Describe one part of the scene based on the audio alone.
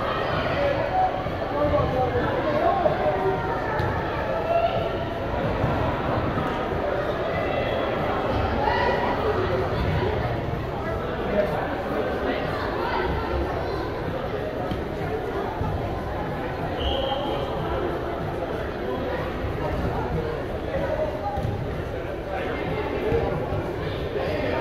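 Children shout and call out to each other in a large echoing hall.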